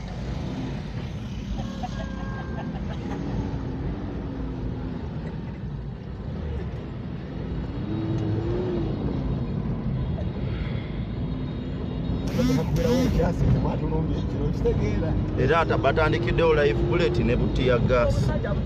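A car engine hums and tyres rumble over a rough road.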